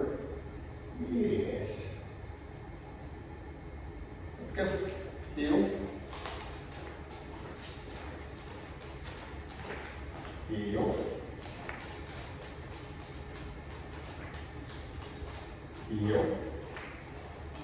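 A man gives short commands to a dog nearby.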